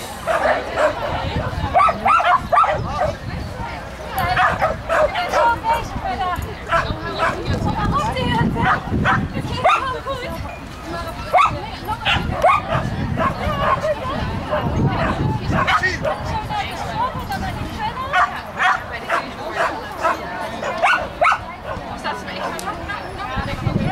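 A man calls out short commands to a dog outdoors.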